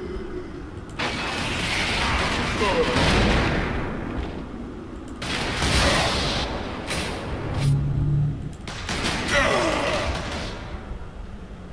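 Bursts of rushing, whooshing energy roar up and fade.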